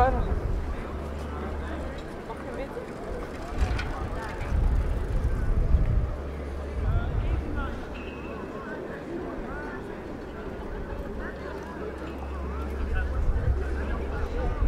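Wind rumbles across an open outdoor space.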